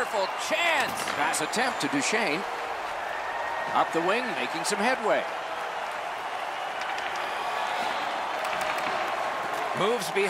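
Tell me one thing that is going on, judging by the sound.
A puck clacks against hockey sticks.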